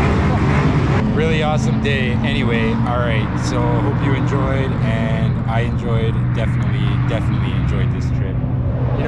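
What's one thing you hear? A man talks calmly close up, outdoors in wind.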